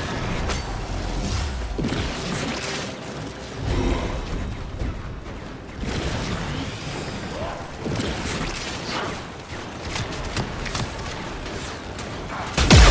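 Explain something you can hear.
Swords slash and whoosh in a fast fight.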